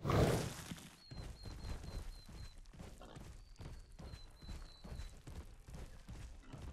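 Heavy footsteps thud steadily on the ground.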